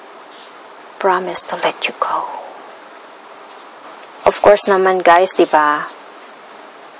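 A woman speaks calmly and close to the microphone, in two short bursts.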